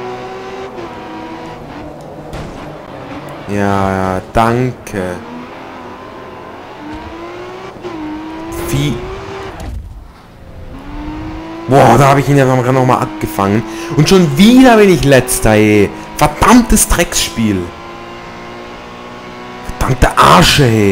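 A racing car engine roars, revving up and dropping as it shifts gears.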